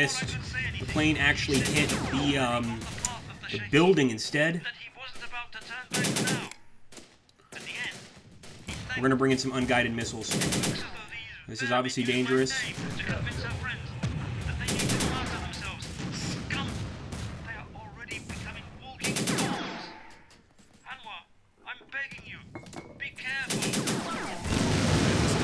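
Explosions boom in short, loud bursts.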